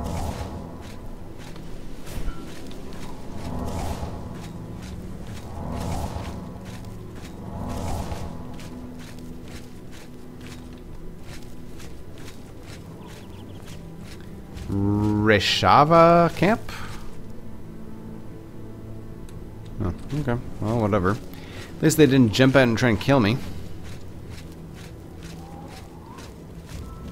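Footsteps crunch steadily on a stone path.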